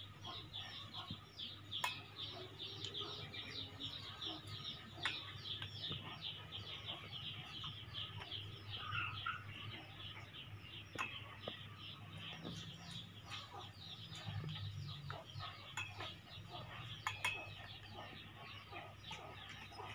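Metal tongs clink against a metal pot.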